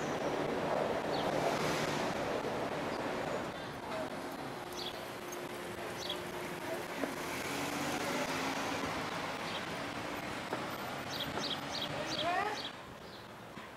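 Traffic hums steadily along a nearby street outdoors.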